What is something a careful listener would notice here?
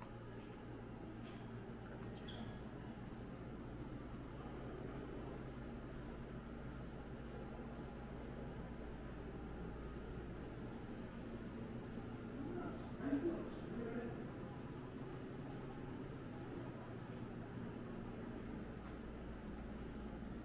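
Vending machines hum steadily indoors.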